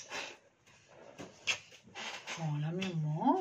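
A woman makes kissing sounds close by.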